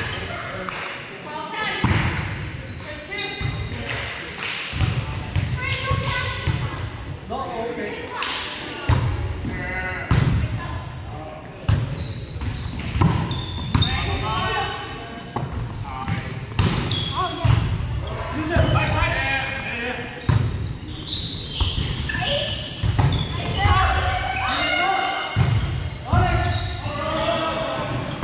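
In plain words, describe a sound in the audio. Adults call out to each other during a game in a large echoing gym.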